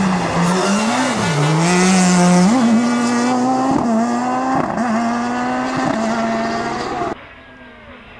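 A rally car engine revs hard up and down.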